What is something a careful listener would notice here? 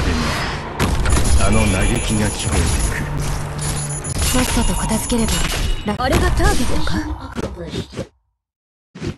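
Video game battle effects clash and whoosh.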